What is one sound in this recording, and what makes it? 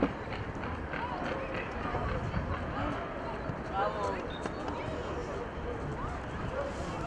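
Young male players shout to each other across an open outdoor field.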